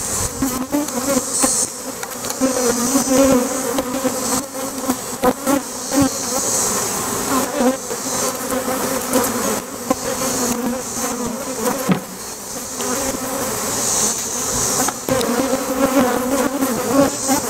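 A swarm of honey bees buzzes around an open hive.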